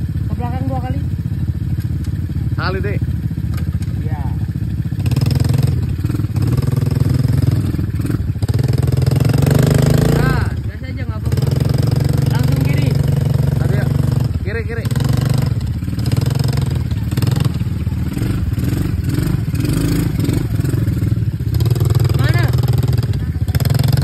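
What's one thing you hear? A quad bike engine rumbles steadily nearby.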